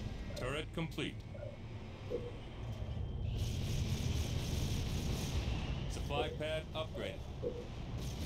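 A menu opens with a short electronic chime.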